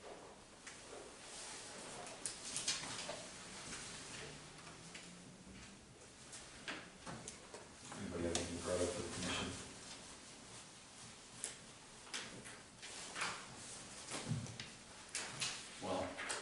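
A man speaks calmly, slightly distant.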